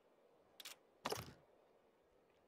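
A small wooden case lid clicks open.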